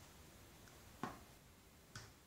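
A plastic scale is set down on a table with a knock.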